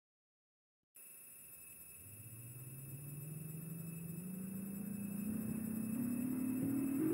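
A tram's electric motor hums and rises in pitch as the tram speeds up.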